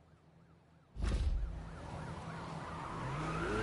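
A sports car engine roars loudly and revs higher.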